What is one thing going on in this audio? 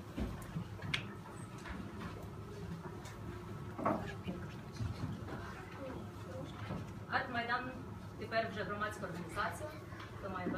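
People in an audience murmur and chat quietly in a room.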